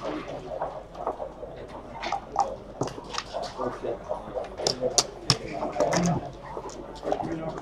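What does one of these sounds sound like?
Plastic game pieces click and clack against a board.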